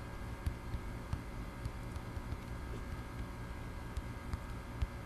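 A phone's keyboard clicks softly as keys are tapped.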